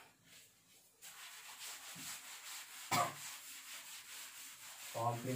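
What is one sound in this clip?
A cloth rubs across a chalkboard.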